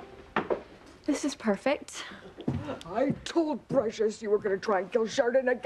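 A young woman speaks excitedly.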